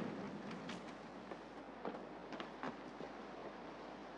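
Footsteps tap along a path outdoors.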